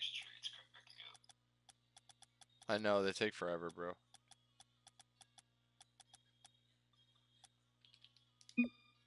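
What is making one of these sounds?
Soft game menu clicks tick quickly.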